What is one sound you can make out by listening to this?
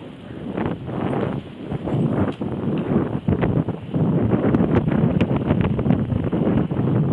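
Wind rumbles and buffets against the microphone of a moving bicycle.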